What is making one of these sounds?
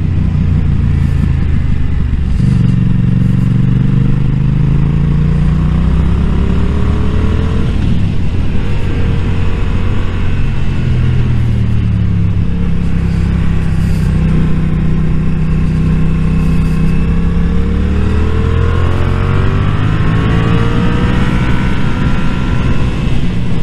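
A motorcycle engine drones close by, its pitch rising and falling as it speeds up and slows down.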